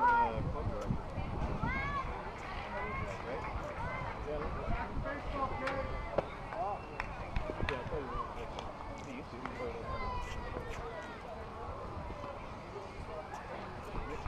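Young players call out from across an open field.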